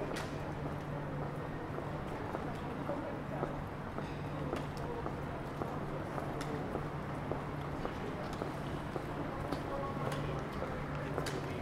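Footsteps tap on a paved street.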